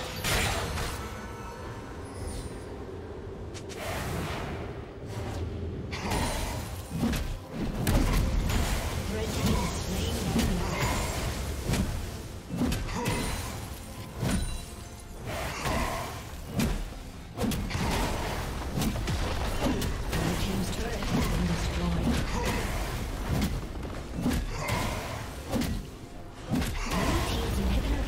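Magic blasts and weapon strikes crackle and burst in a fast fight.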